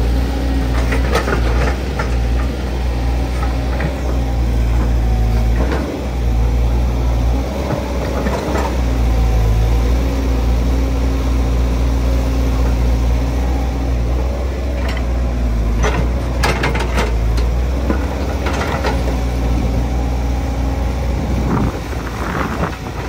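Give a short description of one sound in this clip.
Clods of earth and rock knock and thud as an excavator bucket digs.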